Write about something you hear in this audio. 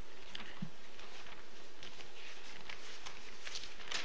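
Paper rustles as a page is handled.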